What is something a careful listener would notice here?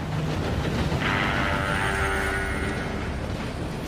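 A steam train whistle blows.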